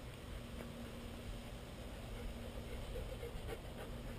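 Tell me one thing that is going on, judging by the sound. A dog's paws patter on asphalt.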